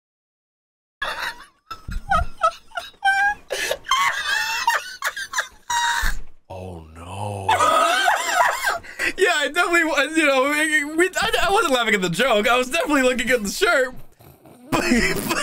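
A second man talks excitedly over an online call.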